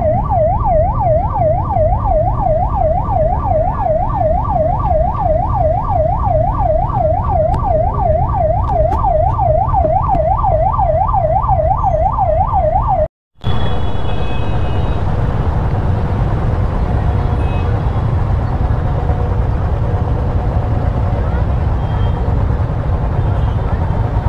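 Motorcycle engines rumble and idle all around.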